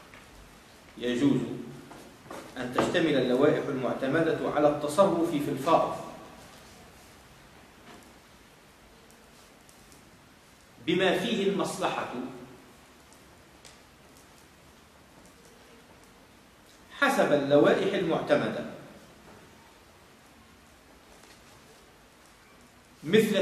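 A man reads aloud calmly in a small room, in bursts with pauses.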